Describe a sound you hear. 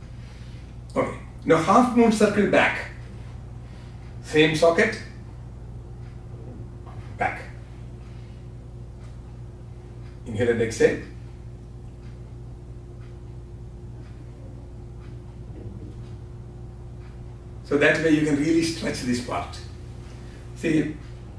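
A man speaks calmly in short phrases with long pauses.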